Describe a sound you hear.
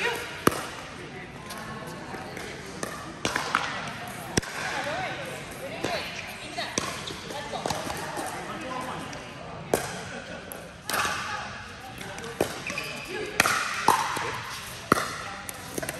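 Paddles pop sharply against a plastic ball.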